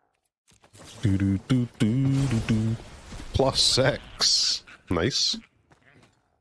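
An adult man talks close to a microphone.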